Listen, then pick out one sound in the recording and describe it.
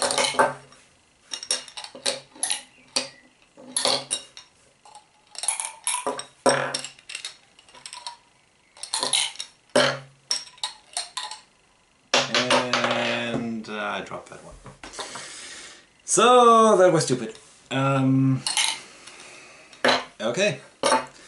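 Small plastic balls clack and rattle as they drop into plastic tubes.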